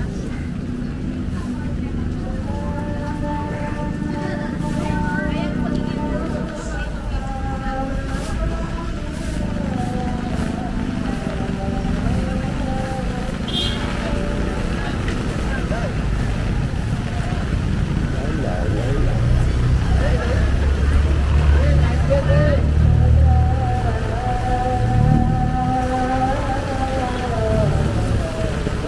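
Rain patters steadily on umbrellas and wet pavement.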